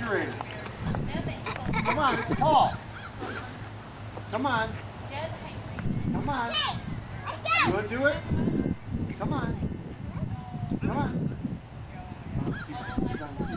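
A man talks cheerfully to children.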